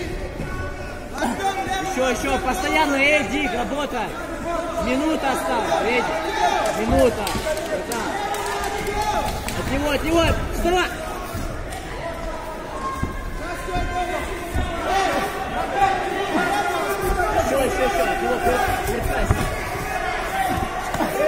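A crowd of men and women shouts and cheers loudly in a large echoing hall.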